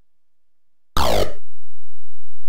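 A video game plays a descending zap as a life is lost.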